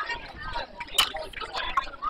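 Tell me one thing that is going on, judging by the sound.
A metal bat cracks against a ball.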